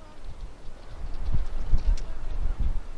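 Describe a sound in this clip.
Footsteps crunch on loose pebbles.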